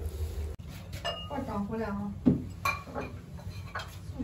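Porcelain bowls clink as they are set down.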